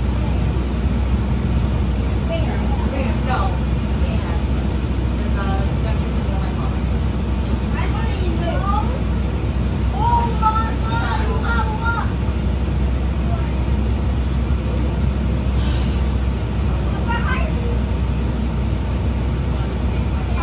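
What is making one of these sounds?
A bus engine rumbles steadily from inside the moving bus.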